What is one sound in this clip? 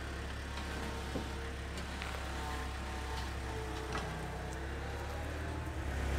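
A small loader rolls slowly forward on concrete.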